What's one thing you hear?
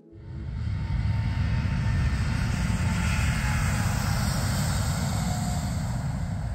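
A jet airliner's engines roar steadily as it taxis.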